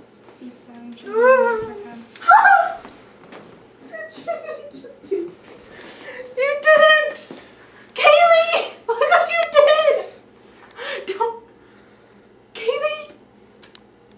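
A young woman squeals and shrieks loudly.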